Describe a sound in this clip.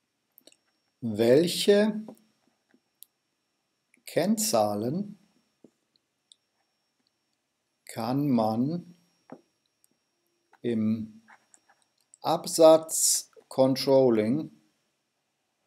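A middle-aged man speaks calmly and slowly into a microphone, pausing between phrases.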